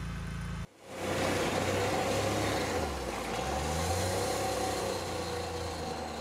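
An off-road buggy's engine roars and revs as it speeds past.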